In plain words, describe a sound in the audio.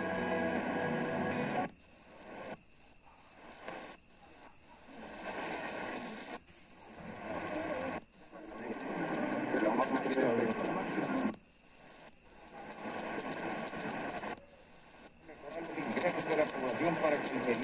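A radio plays faint voices and music between stretches of static.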